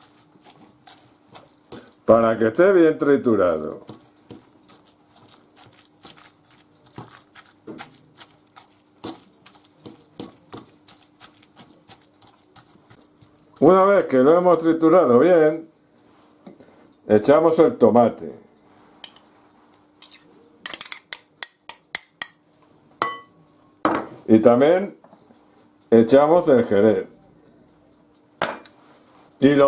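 A fork scrapes and clinks against a glass bowl.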